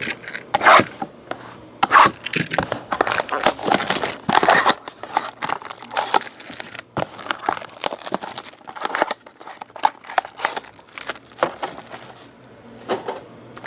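Cardboard boxes knock and slide on a table.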